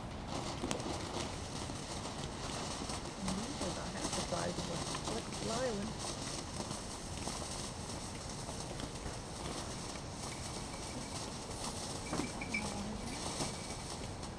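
Firework sparks pop and crackle.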